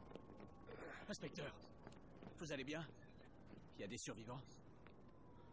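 A man speaks tensely up close.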